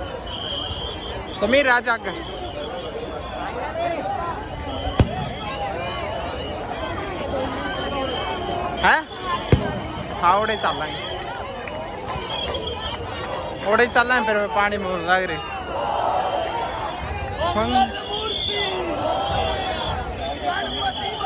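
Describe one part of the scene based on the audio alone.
A large crowd chatters and murmurs all around outdoors.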